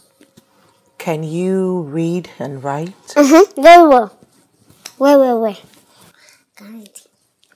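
A young girl speaks loudly and with animation, close by.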